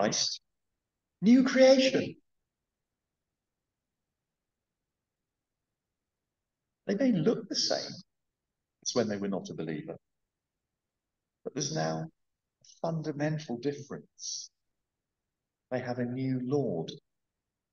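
A middle-aged man speaks calmly into a close microphone, with pauses between phrases.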